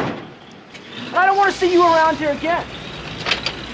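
A man shouts sharply nearby.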